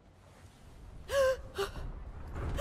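A young woman cries out in panic.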